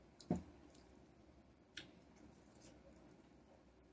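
A young woman chews and slurps juicy mango close by.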